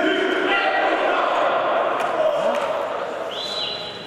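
A team of young men shouts and cheers together in a huddle, echoing in a large hall.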